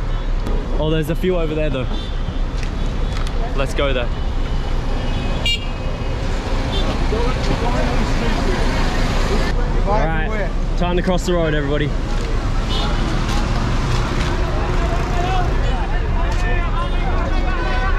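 Traffic and busy street noise hum steadily outdoors.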